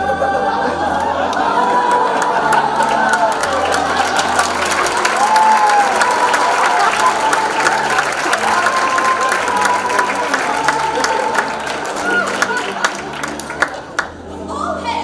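A band plays lively music in a large hall.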